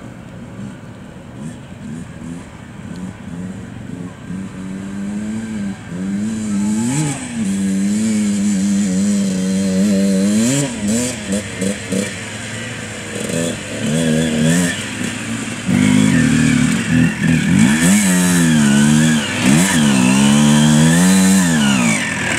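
A motorcycle engine revs up and down, coming closer and growing louder.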